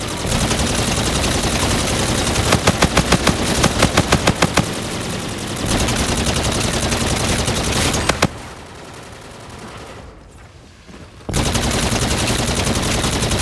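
A rapid-fire energy gun shoots in loud, quick bursts.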